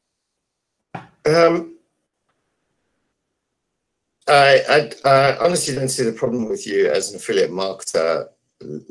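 A man speaks through an online call microphone.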